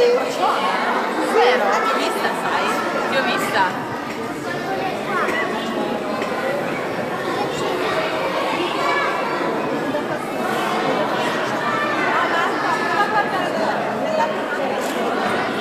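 Young children chatter and call out close by.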